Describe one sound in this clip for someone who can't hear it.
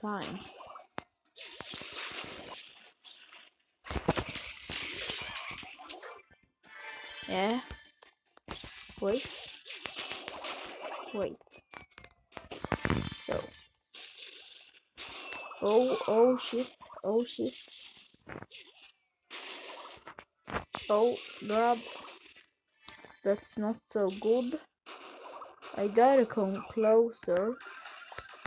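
Video game sound effects pop and whoosh.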